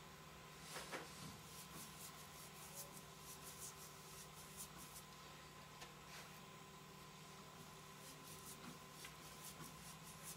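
A blade scrapes and scratches in short strokes.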